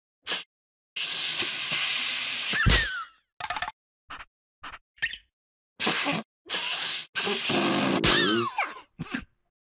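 Air rushes loudly into an inflating mat.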